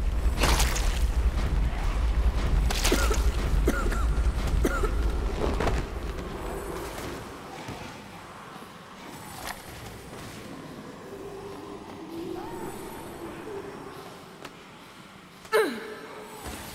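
Heavy blows thud against bodies in a scuffle.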